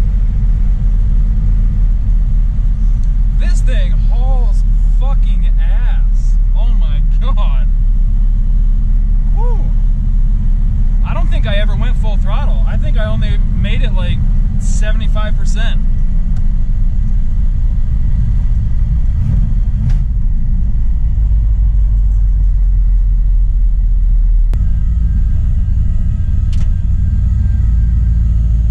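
A car engine drones steadily while driving.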